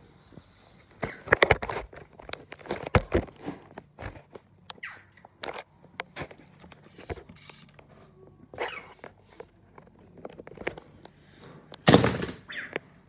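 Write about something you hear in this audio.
Hands handle a plastic toy with clicks and knocks.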